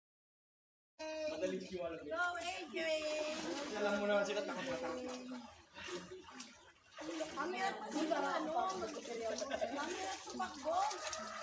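Children and adults shout and laugh in a pool outdoors.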